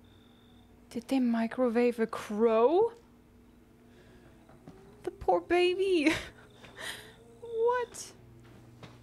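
A young woman close to a microphone groans and wails in disgust, her voice rising and falling.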